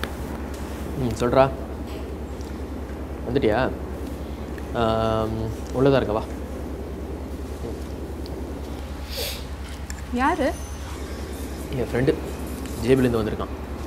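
A young man talks calmly into a phone, close by.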